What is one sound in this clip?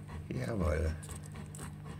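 A newborn puppy squeaks briefly up close.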